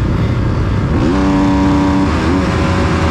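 Motorbike engines rev up loudly all around.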